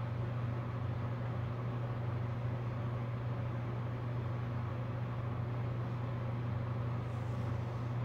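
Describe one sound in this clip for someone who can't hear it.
Thick liquid pours softly from a plastic cup.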